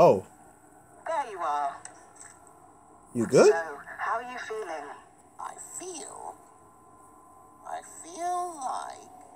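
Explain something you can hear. A cartoonish male voice talks with animation.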